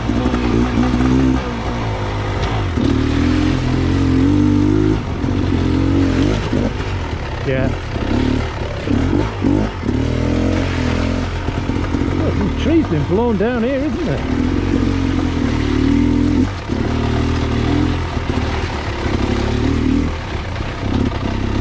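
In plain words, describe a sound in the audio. A dirt bike engine revs and drones up close, rising and falling in pitch.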